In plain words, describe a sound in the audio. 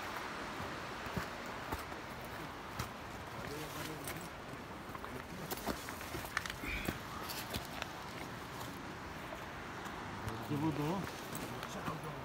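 Footsteps crunch on dry ground and stones.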